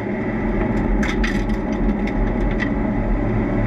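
Tyres rumble over kerbs with sharp bumps.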